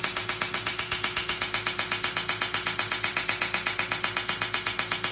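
A laser device snaps in rapid, even pulses.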